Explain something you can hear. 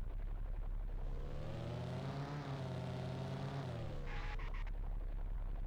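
A car engine revs up and then drops off as the car pulls away.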